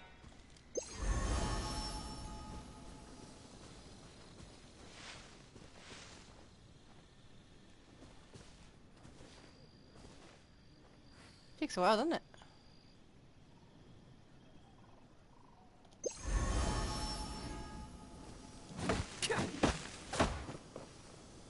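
A sword swishes through the air in quick slashes.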